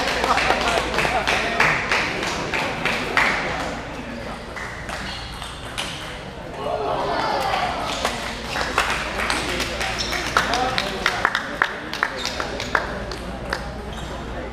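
A crowd of spectators murmurs in the background.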